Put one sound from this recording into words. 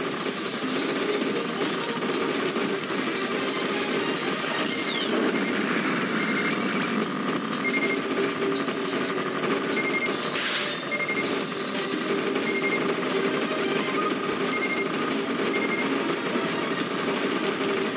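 Rapid shots and bullet sounds crackle constantly.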